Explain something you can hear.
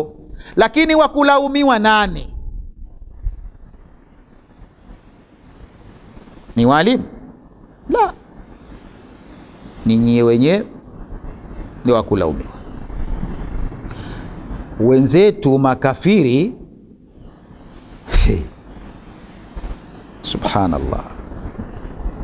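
A man speaks slowly and calmly into a close microphone, with long pauses.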